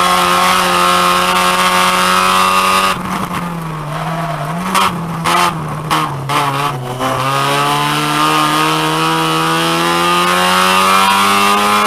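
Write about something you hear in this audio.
A car engine roars loudly at high revs from inside the cabin.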